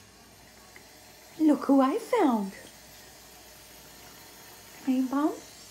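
A cat laps water.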